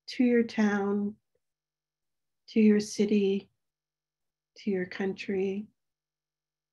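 An older woman speaks slowly and calmly over an online call, pausing between phrases.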